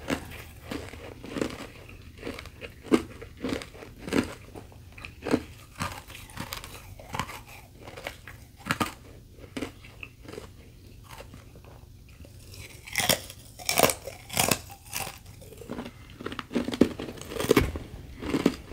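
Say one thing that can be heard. Ice crunches loudly between teeth, close to a microphone.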